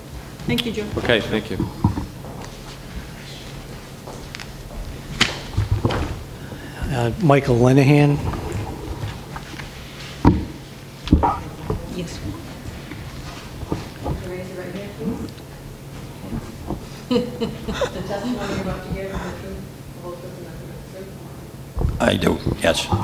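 A middle-aged man speaks calmly into a microphone in a room with some echo.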